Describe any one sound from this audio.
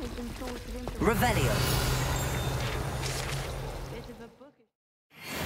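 A bright magical shimmer swells and rings out, then slowly fades.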